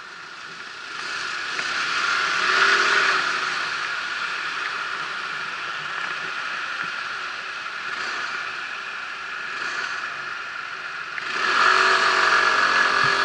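Wind rushes over the microphone.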